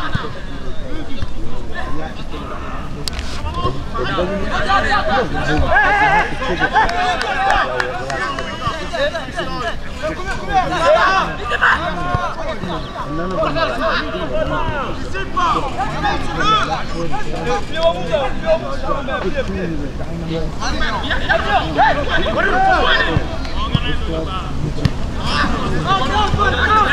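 A crowd of spectators chatters and cheers in the distance.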